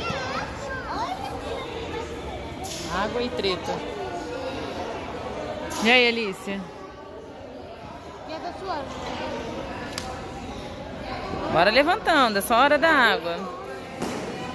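A young girl talks close by in an excited voice.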